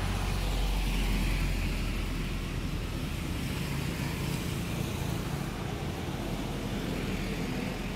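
A monkey's feet rustle through dry leaves close by.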